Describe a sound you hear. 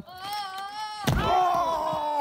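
A body slams onto a wrestling ring mat with a heavy thud.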